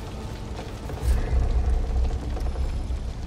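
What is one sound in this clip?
A deep whooshing boom sounds and slowly fades.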